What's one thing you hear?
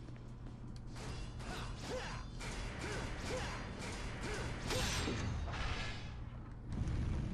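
Magical chimes ring out one after another, rising in pitch.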